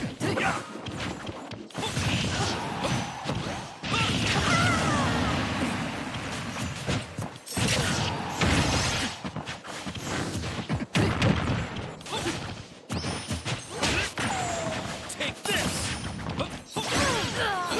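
Game fighters clash with punchy hits and bursts of sound effects.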